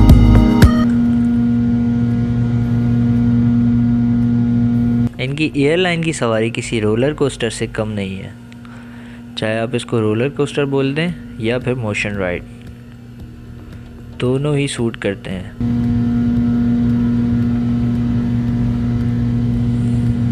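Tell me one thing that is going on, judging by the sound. Jet engines drone steadily inside an aircraft cabin.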